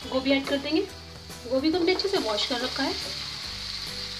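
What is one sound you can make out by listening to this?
Cauliflower pieces tumble into a frying pan.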